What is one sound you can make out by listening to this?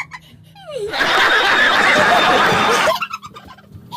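A group of men and a woman laugh loudly and shriek.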